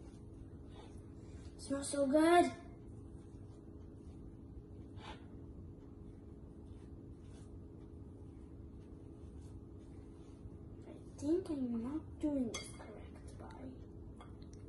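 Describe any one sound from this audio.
A spoon stirs and scrapes in a glass bowl.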